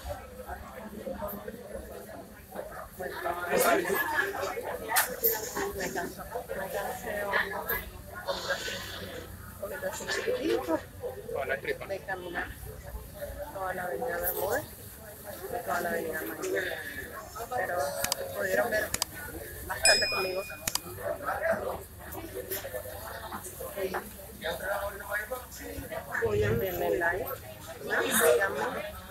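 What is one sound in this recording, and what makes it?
A woman talks calmly and close up, straight to the listener.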